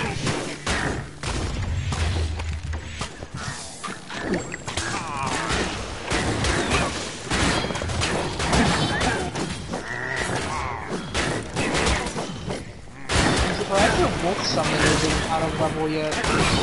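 Swords clash and slash repeatedly against monsters.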